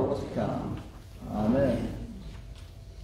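A man chants a short phrase in a large echoing hall.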